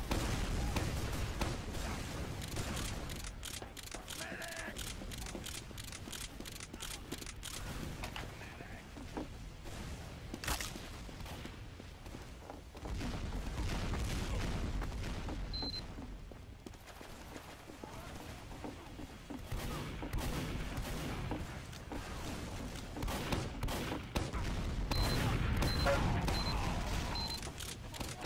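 Footsteps thud quickly on hard floors and wooden boards.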